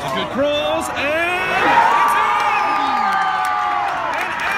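A crowd of spectators cheers loudly and then fades.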